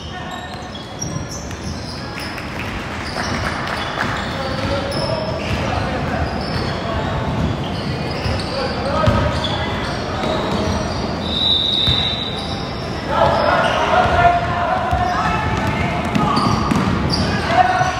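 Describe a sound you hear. Children shout and call out across an echoing hall.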